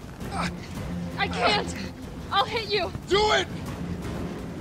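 A young woman answers in a shaky, pleading voice.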